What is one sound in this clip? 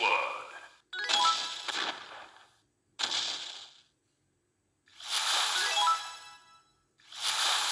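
A cartoon cannon shell explodes with a bursting blast.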